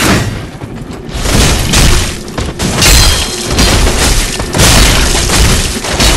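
Swords clash and strike armour in a fight.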